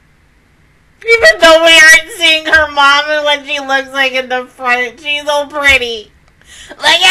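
A young woman sings loudly and with vibrato close to a microphone.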